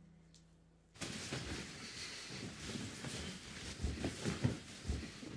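A heavy blanket rustles and swishes as it is pulled up.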